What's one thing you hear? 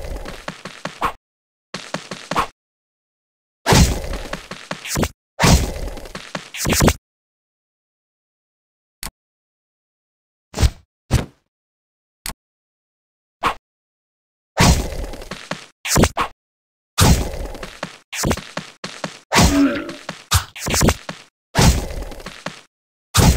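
Game sword slashes and hit effects burst in quick bursts.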